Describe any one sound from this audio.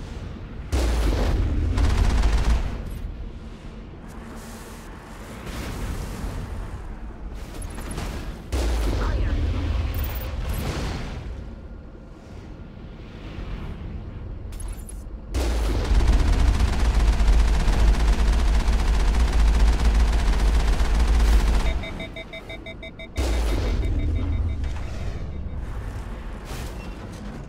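A heavy cannon fires with a deep, rumbling boom.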